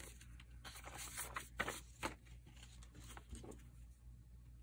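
Paper rustles and slides as booklets are handled.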